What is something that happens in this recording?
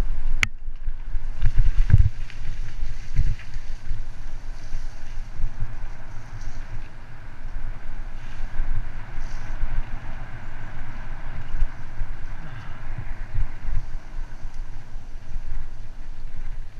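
Bicycle tyres roll and bump over a rough dirt trail.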